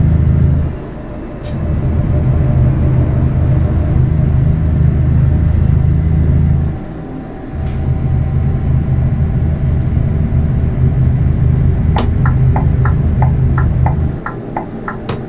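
A truck engine drones low and steady, dropping away briefly during gear changes.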